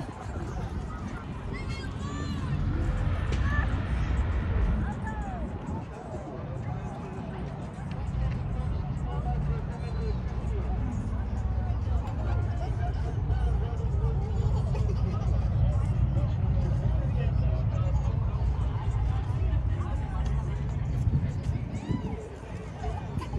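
Wind blows in gusts across the microphone outdoors.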